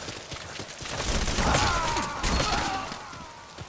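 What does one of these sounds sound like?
Gunshots crack close by.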